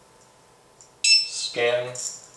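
A barcode scanner beeps once.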